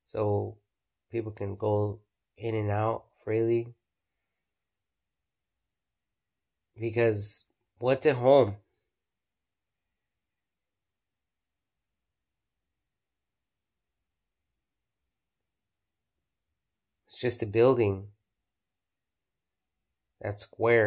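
A man speaks calmly and close up, in short bursts with long pauses.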